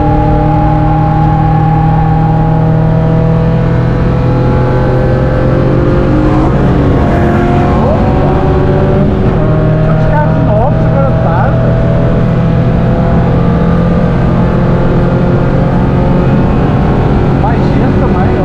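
A car engine roars loudly from inside the cabin, rising and falling through the gears.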